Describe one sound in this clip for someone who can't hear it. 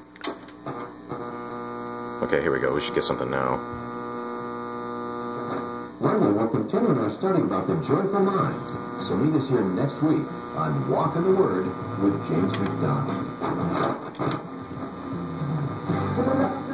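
Voices and music from an old radio come and go through static as its tuning knob is turned.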